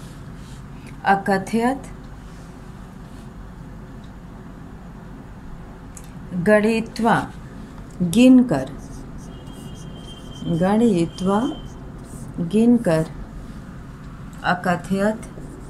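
A middle-aged woman speaks calmly in short phrases, close by.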